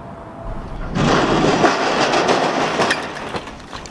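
A bicycle crashes into loose dirt with a loud thud.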